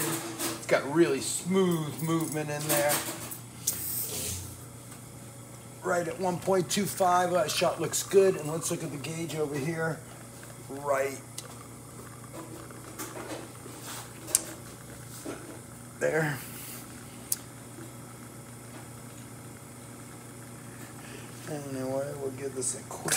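An espresso machine hums steadily as it pumps.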